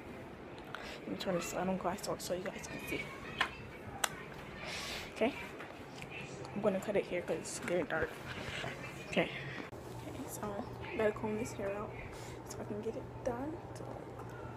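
A young girl talks casually close to a phone microphone.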